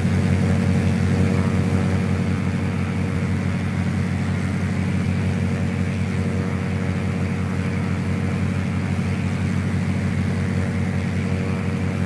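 A small propeller plane's engine drones steadily from inside the cabin.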